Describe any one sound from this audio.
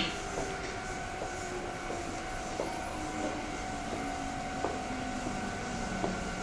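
A train rolls slowly into the station, its wheels rumbling and squealing on the rails.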